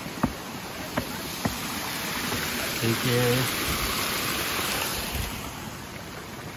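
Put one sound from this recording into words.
Water pours and splashes onto stone.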